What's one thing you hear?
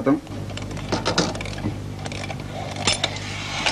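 A spoon clinks against a metal pot.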